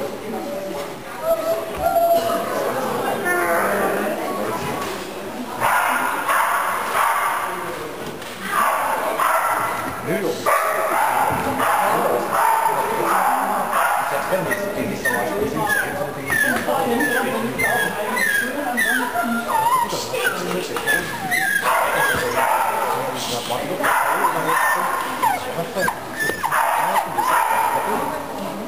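A woman talks nearby, echoing in a large hall.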